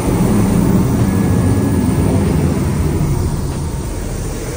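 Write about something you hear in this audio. Wind blows outdoors, rumbling.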